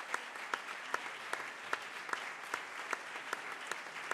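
A woman claps her hands close by.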